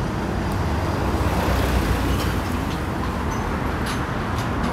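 A truck drives past close by.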